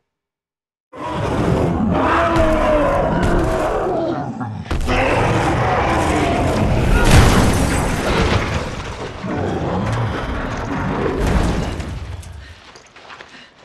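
A huge creature roars and growls.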